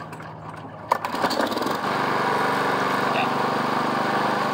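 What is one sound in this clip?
A lawn mower engine starts and runs with a steady roar.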